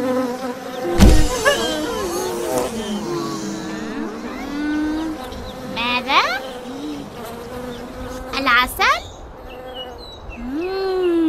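A man speaks in a high, cartoonish voice with lively expression, close to the microphone.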